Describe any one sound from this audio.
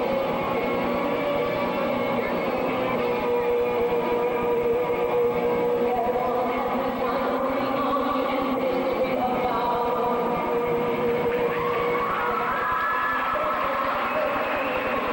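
Music plays over loudspeakers in a large echoing hall.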